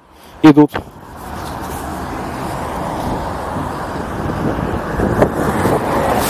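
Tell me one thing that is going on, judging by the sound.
Wind rushes steadily past while riding along a street, growing louder.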